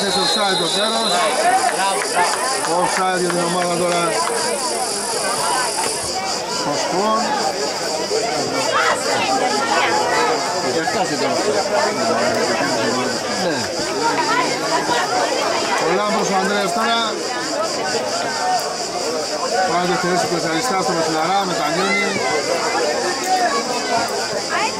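Footballers shout to one another across an open pitch outdoors.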